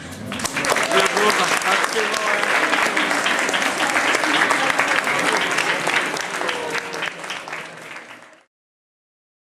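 A crowd of men and women chatters and cheers.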